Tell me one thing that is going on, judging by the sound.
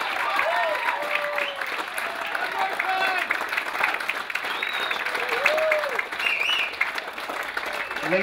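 A crowd claps and cheers loudly in a room.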